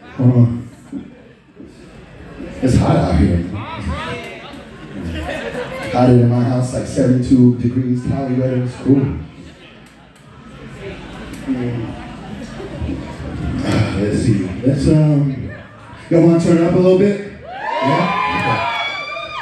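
A young man raps loudly into a microphone through loudspeakers.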